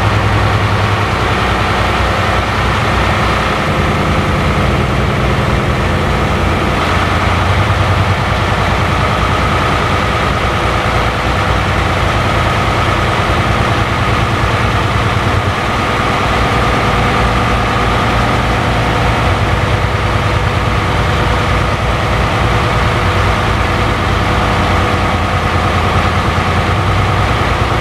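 Tyres rumble on the road surface.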